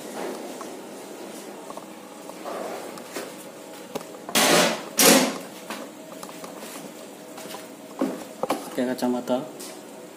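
Hard objects knock and rattle as they are handled close by.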